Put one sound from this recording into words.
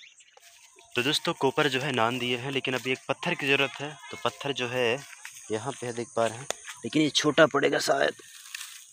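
A young man talks close by, with animation.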